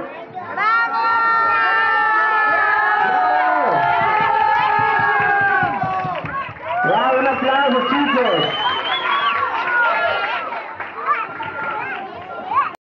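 A large crowd cheers and shouts loudly, echoing in a hall.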